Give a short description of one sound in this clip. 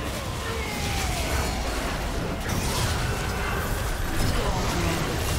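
Magic spells crackle and burst in a busy fight.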